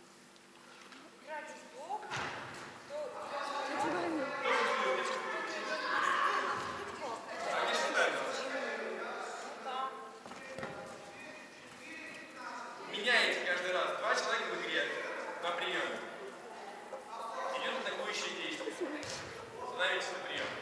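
A volleyball thuds off hands.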